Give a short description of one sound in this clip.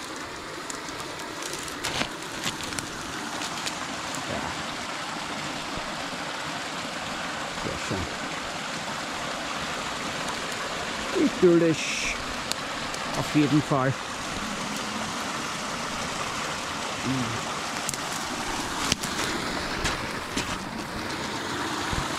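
A small stream trickles and babbles over stones outdoors.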